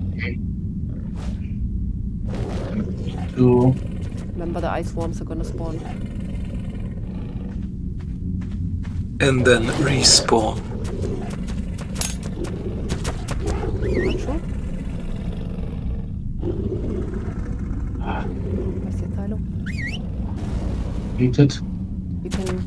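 A deep, steady rumble echoes through an ice cave.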